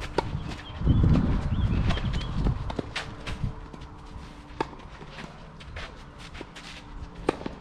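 Tennis balls are struck with rackets in a rally outdoors.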